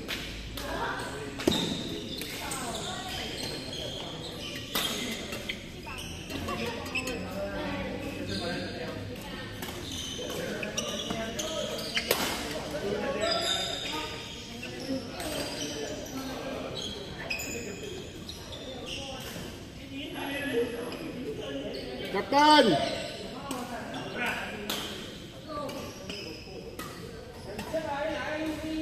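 Rackets strike a shuttlecock with sharp taps in a large echoing hall.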